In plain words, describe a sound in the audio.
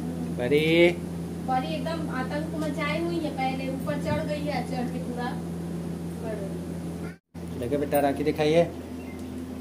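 A woman speaks calmly and gently close by.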